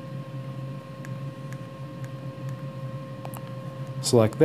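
Buttons click softly as a finger presses them.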